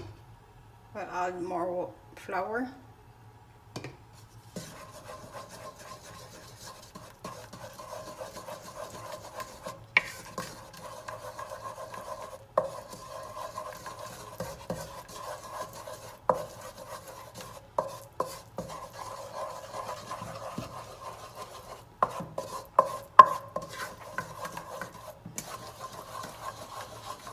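A wooden spoon scrapes and knocks against a metal saucepan.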